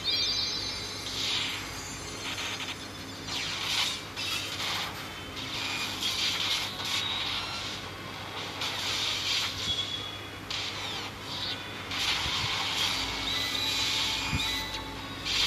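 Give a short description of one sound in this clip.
Magic blasts whoosh and shimmer brightly.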